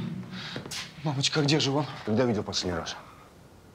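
A man speaks in a low, firm voice, close by.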